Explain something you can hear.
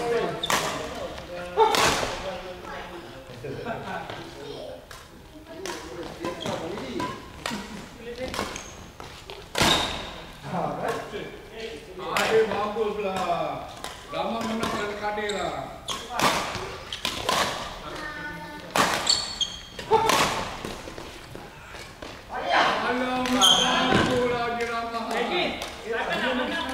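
Rackets smack shuttlecocks in a large echoing hall.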